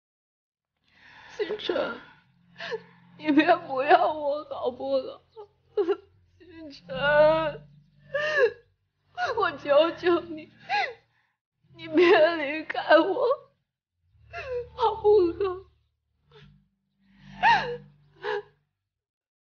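A young woman pleads tearfully, sobbing as she speaks.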